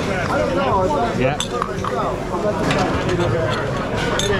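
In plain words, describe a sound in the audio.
Metal utensils clink against dishes.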